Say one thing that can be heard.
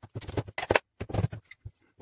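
A metal casing clicks and rattles as hands handle it.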